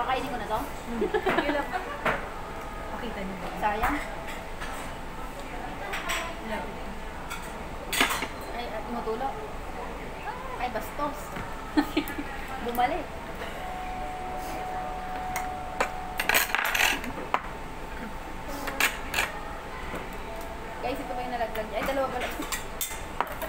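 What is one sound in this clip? Chopsticks and spoons clink against dishes.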